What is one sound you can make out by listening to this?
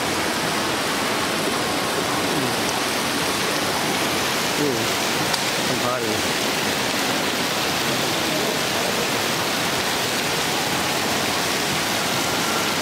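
Water splashes steadily in a fountain.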